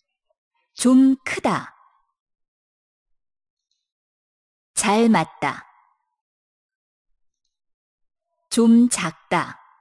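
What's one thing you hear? A young man speaks short words clearly into a microphone, pausing between them.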